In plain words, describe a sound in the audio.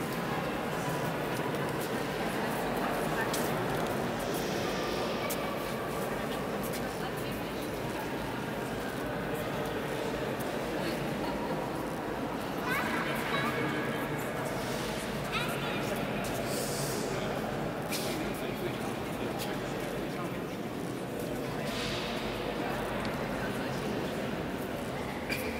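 A crowd of visitors murmurs and chatters in a large echoing hall.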